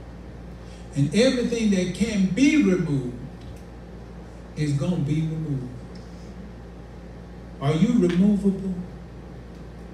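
A man speaks into a microphone in short, forceful bursts with long pauses, heard through a loudspeaker in an echoing room.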